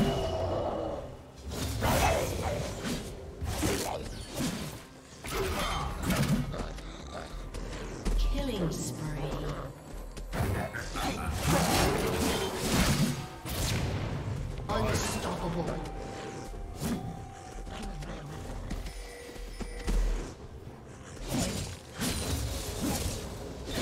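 Fantasy game spells whoosh and burst over and over in a fight.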